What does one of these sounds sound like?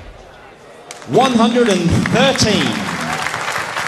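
A man announces a score loudly through a microphone.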